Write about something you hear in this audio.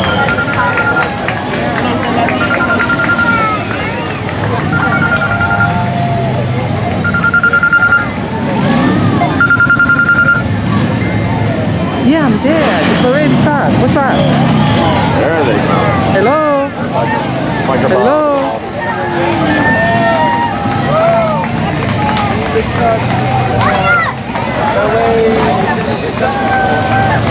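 A large outdoor crowd of men, women and children chatters and calls out all around.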